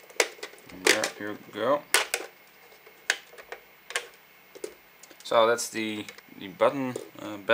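Plastic parts click and snap as they are prised apart.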